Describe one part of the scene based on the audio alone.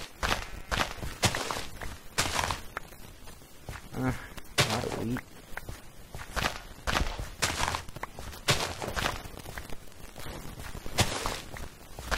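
Plants are cut with short, crisp rustling snaps.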